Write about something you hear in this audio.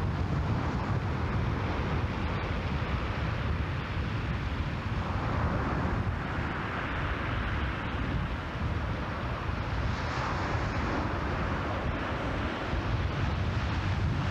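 Choppy waves slosh and splash against a boat.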